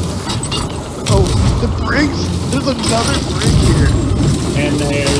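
A cannon fires with a heavy boom.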